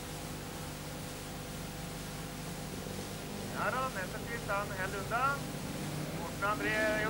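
Car engines drone steadily in the distance.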